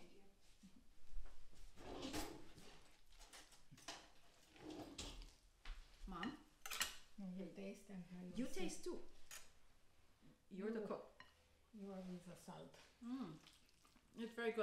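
A spatula scrapes and stirs food in a glass bowl.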